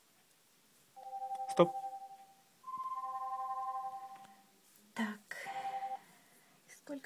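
A phone alarm beeps in steady electronic tones.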